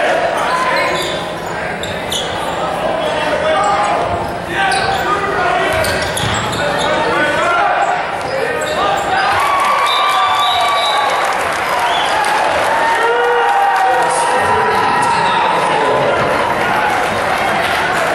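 A crowd cheers and chatters loudly in a large echoing gym.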